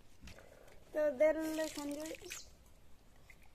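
Lentils splash and pour into a pot of water.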